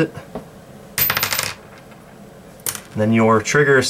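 A gun's metal parts click and rattle as they are handled.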